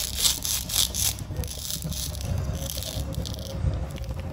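Velcro halves of a toy vegetable rip apart.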